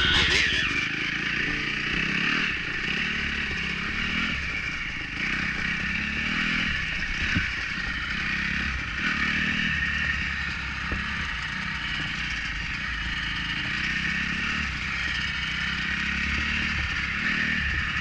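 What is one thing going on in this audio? A dirt bike engine revs and drones up close.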